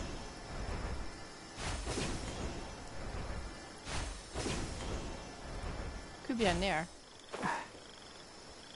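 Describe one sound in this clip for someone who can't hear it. Magical whooshing bursts sweep past in quick swells.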